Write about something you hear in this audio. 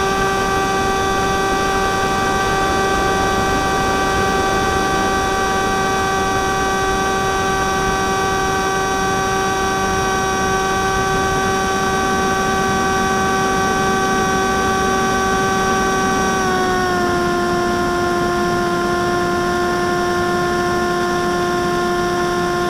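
Wind rushes past a model airplane in flight.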